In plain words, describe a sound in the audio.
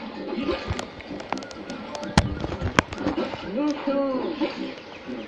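Video game sound effects chime and clatter from a television speaker.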